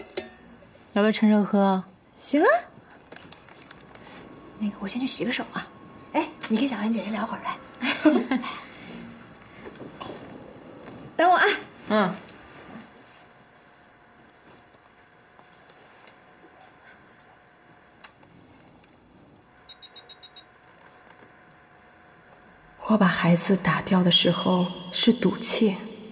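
A young woman speaks calmly and softly nearby.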